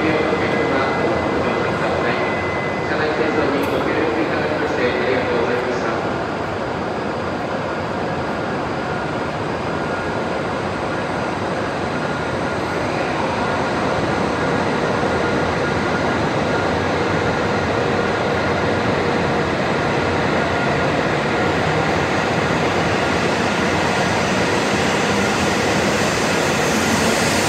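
A high-speed train glides past close by with a steady rushing roar.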